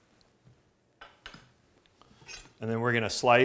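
A knife taps on a plate.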